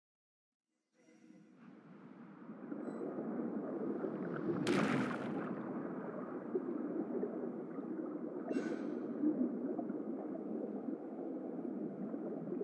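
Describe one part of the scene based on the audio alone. Water rushes and swirls loudly.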